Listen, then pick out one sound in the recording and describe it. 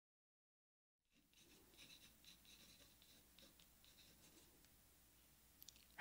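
A pencil scratches on paper close up.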